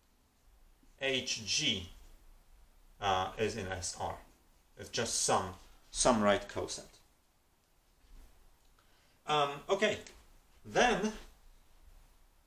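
A man speaks calmly and clearly, close to the microphone, explaining at a measured pace.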